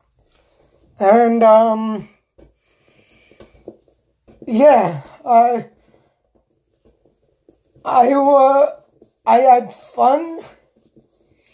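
A man sings loudly in short, drawn-out phrases close by.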